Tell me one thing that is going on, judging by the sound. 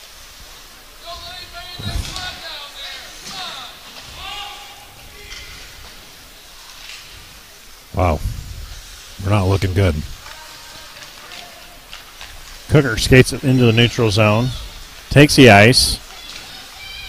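Men in a crowd shout loudly nearby in an echoing rink.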